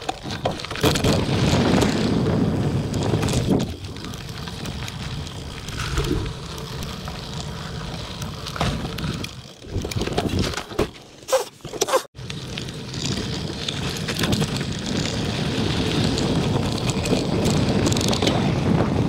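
Wind rushes past a moving rider outdoors.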